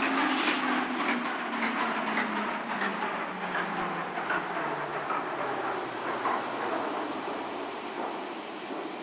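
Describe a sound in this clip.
A train's electric motor whines and slowly drops in pitch.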